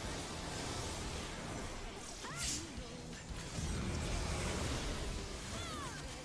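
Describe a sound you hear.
Magic spell effects whoosh and shimmer in a battle.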